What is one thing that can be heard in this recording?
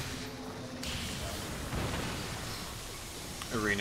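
A burst of fire whooshes and crackles.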